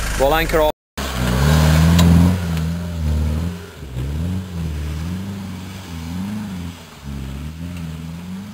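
A four-wheel-drive engine revs and strains as the vehicle climbs a dirt slope.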